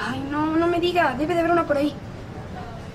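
A young woman speaks in an animated voice close by.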